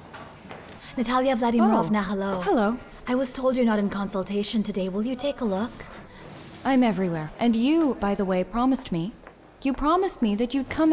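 A young woman answers calmly nearby.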